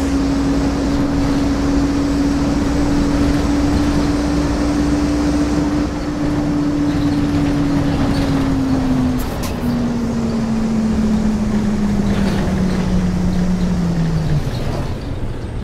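A bus engine hums steadily, then winds down as the bus slows.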